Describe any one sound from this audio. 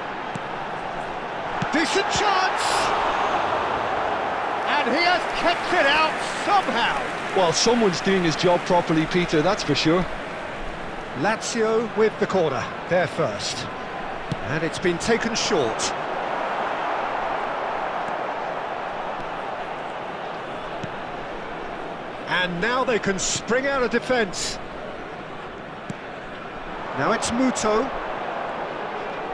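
A large crowd cheers and murmurs steadily in a stadium.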